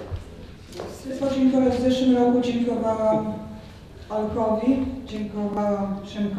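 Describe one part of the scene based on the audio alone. A middle-aged woman sings into a microphone, heard through loudspeakers.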